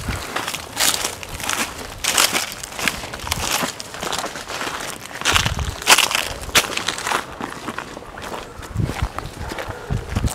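Footsteps crunch through dry leaves and twigs at a steady walking pace.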